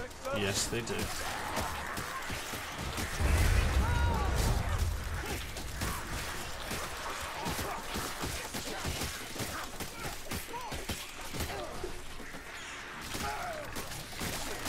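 Weapons hack and slash into flesh with wet impacts.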